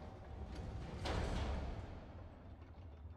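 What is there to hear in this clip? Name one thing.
A heavy metal machine thuds and creaks as it swings on chains.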